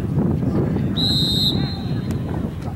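A referee's whistle blows once, sharp and short.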